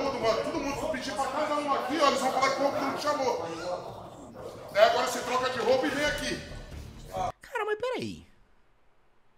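Several men talk with animation, heard slightly distant.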